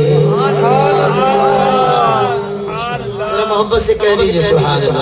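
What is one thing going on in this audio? A man sings a melodic chant through a microphone, with some echo.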